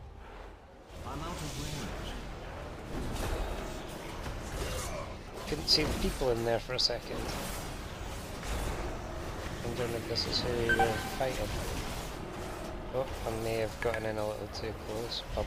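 Spells and weapons clash in a game battle, with bursts of magical effects.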